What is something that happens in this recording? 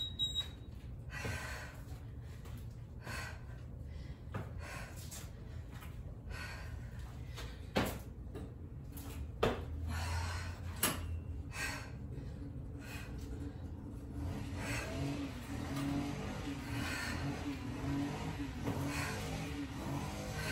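Feet thud on a concrete floor during a workout.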